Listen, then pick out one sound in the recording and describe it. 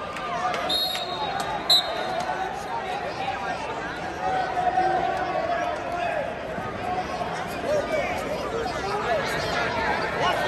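A crowd murmurs and calls out throughout a large echoing arena.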